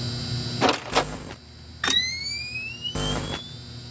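Static hisses from a monitor.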